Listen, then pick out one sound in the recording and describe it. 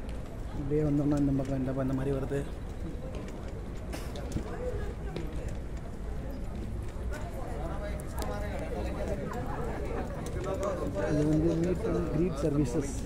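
Footsteps walk on a hard floor.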